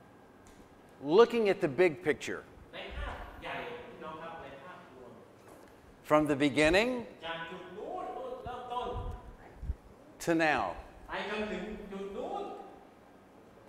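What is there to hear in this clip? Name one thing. A man speaks with animation through a microphone in a reverberant hall.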